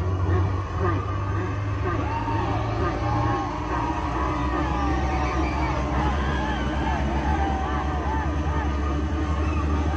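A large crowd sings along and cheers loudly outdoors.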